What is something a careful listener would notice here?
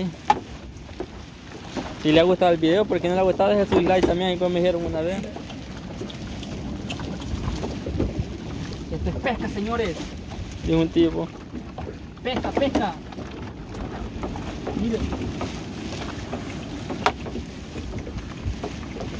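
Water splashes and drips as a net is hauled out of it.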